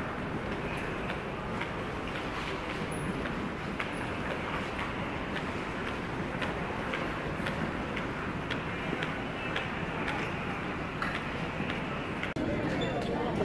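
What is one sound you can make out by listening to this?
Footsteps echo in a large hall.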